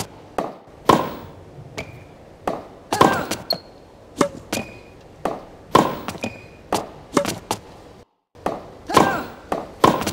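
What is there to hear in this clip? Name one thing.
A tennis ball is struck with a racket again and again in a rally.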